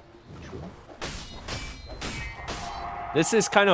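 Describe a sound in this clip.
Magic spells burst and crackle in quick blasts.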